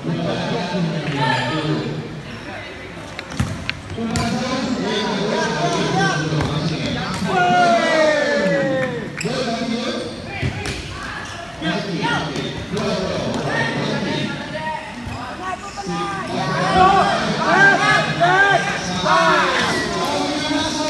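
Spectators close by shout and cheer with excitement.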